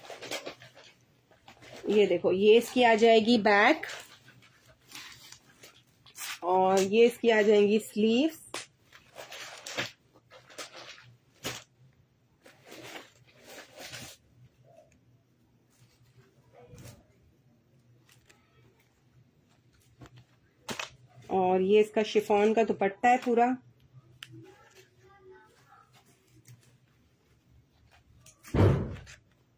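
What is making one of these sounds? Plastic packaging crinkles as fabric is handled.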